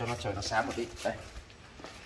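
Shoes scuff on a concrete floor.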